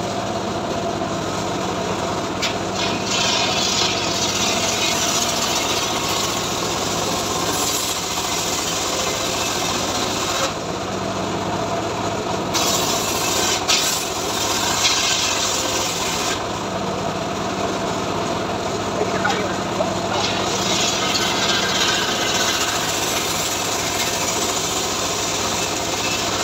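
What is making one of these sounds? A saw blade whines loudly as it cuts through wood.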